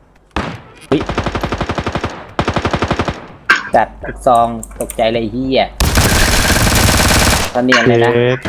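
Automatic gunfire rattles in rapid bursts close by.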